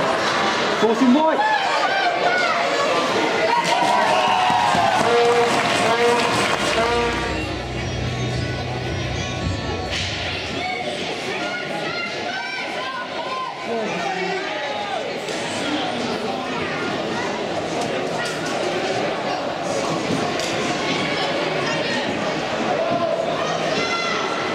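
Spectators shout and cheer in an echoing indoor ice rink.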